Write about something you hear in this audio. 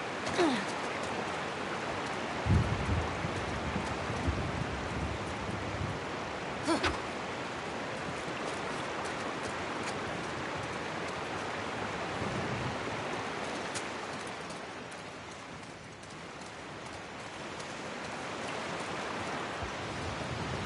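Rain falls steadily outside.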